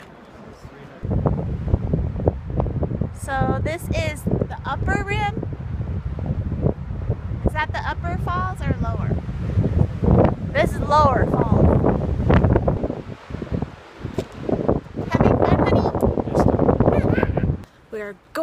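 Wind gusts against the microphone with a low rumble.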